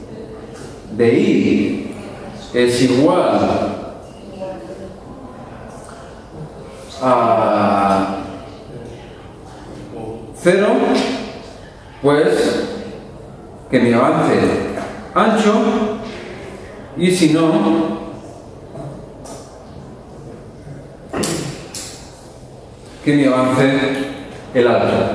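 A man speaks calmly into a microphone in a room with some echo.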